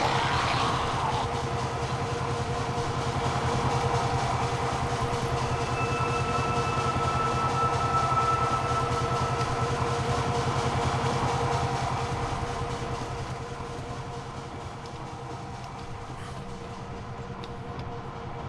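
Machinery hums steadily in the background.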